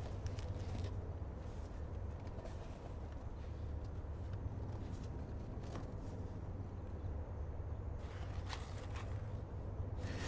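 Cardboard rustles and scrapes faintly as a box is handled.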